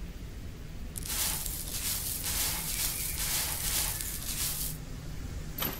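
A brush sweeps loose dirt in quick strokes.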